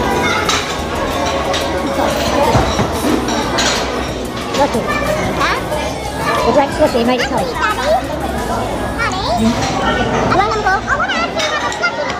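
A fork clinks on a plate.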